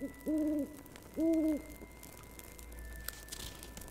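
An owl's wings flap as it flies past.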